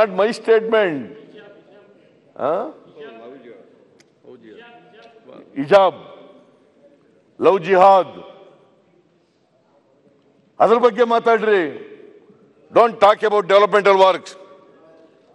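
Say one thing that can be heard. An elderly man speaks forcefully into a microphone in a large echoing hall.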